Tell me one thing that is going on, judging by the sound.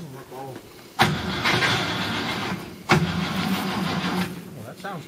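A vehicle engine starts up and idles with a loud rumble.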